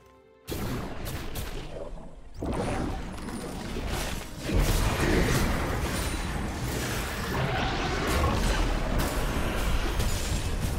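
Sword strikes and spell blasts clash in a video game battle.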